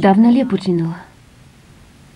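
A woman speaks quietly and calmly up close.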